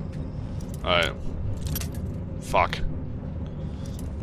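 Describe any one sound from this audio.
A metal lockpick scrapes and clicks inside a lock.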